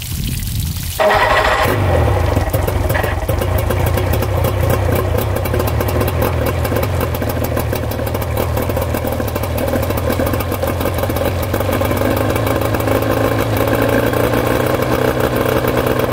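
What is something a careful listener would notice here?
An outboard motor starts and idles with a steady rumble.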